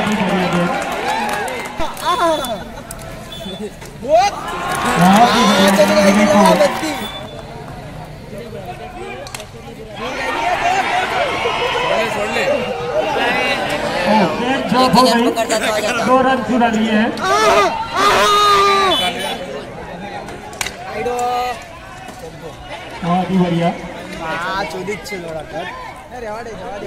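Young men shout and call out excitedly nearby, outdoors.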